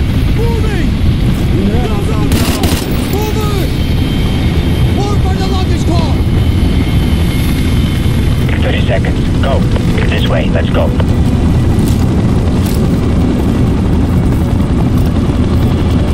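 A machine gun fires in rapid, continuous bursts.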